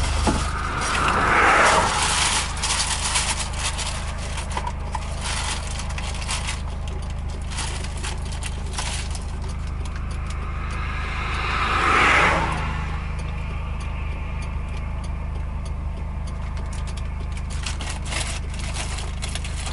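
Tyres rumble on asphalt, heard from inside a moving car.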